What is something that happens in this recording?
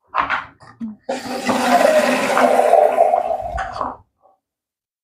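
Water runs from a tap into a metal pot.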